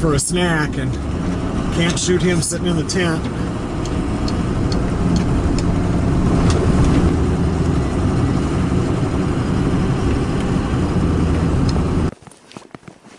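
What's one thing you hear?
A vehicle engine hums steadily at low pitch.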